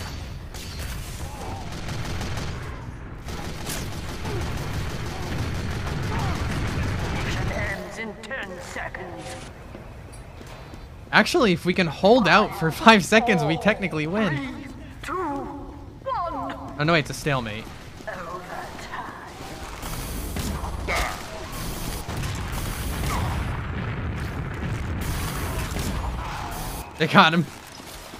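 Gunfire and explosions crackle in a game.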